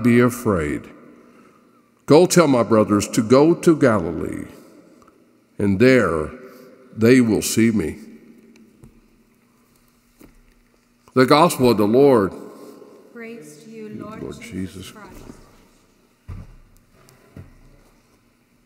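A man sings a chant through a microphone in a large echoing hall.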